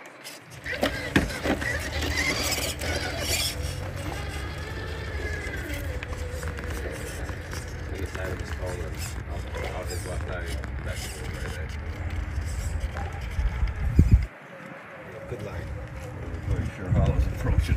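A small electric motor whirs as a toy truck crawls.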